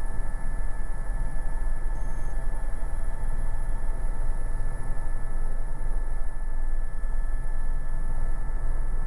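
A helicopter's turbine engine whines steadily.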